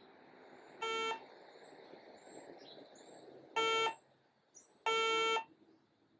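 A gas detector gives short, shrill electronic beeps.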